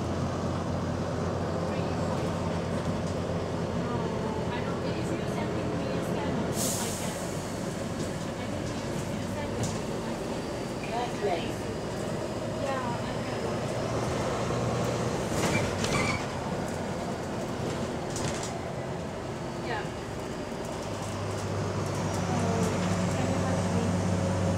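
A bus engine hums and drones steadily throughout.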